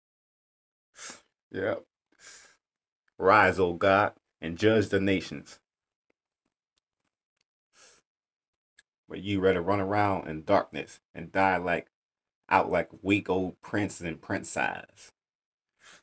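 A man speaks close by with animation, in short bursts.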